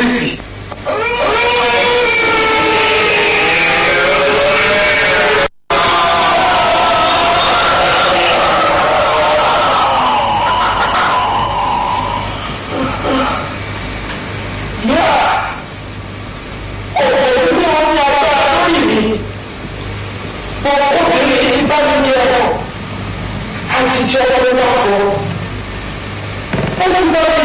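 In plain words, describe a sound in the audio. A woman wails and sobs in distress.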